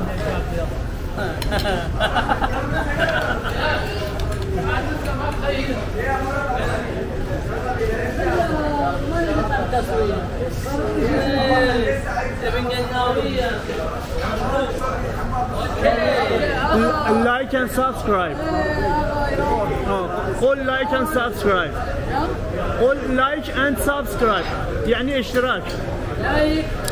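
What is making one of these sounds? Several young men talk and chatter nearby.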